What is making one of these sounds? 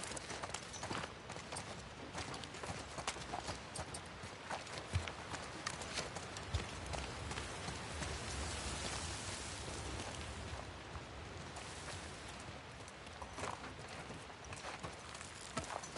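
Footsteps crunch over debris and broken ground.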